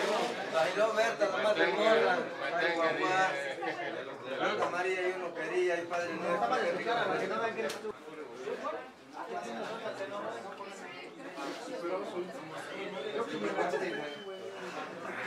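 A crowd of people chatters in the background indoors.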